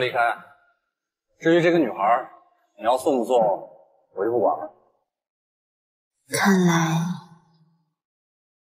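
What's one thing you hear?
A young man speaks calmly and coolly nearby.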